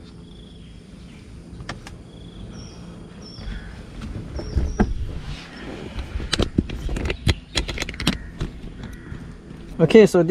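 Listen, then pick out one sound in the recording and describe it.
Plastic trim clicks and rattles as it is handled.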